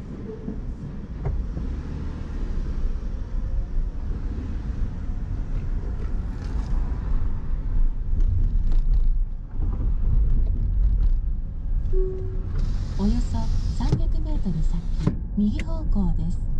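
A car engine hums as the car drives along a road.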